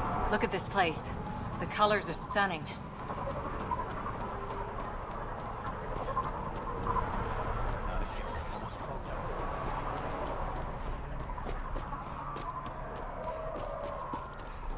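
Footsteps run across dry, hard ground.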